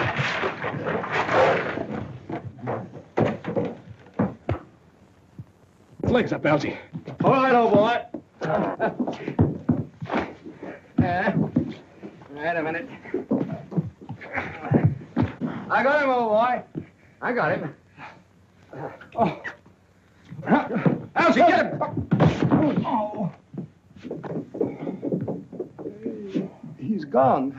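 Men grunt and shout close by as they struggle.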